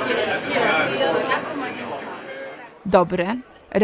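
A crowd of people chatters in a busy hall.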